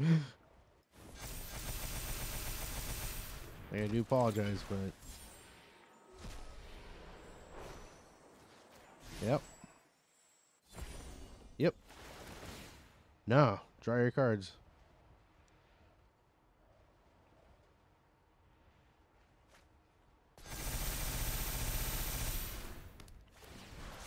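Electronic whooshing game effects sound as cards are played.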